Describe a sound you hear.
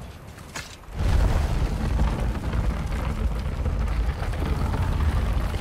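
A heavy stone block scrapes and rumbles as it is pushed along.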